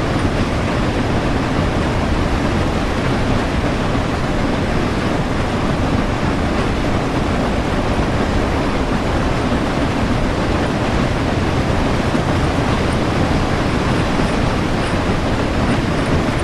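A steam locomotive rumbles and clatters steadily along the track.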